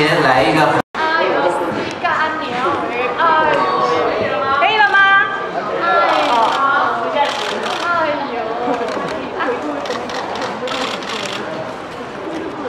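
Young women talk with animation through microphones.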